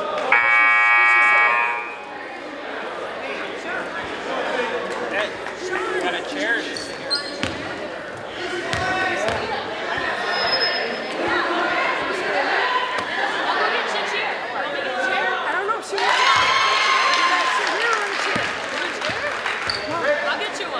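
A crowd chatters in a large echoing gym.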